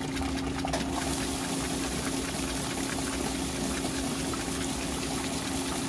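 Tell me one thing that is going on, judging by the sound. Water sloshes and splashes steadily in a washing machine.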